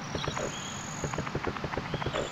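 Quick, light footsteps patter.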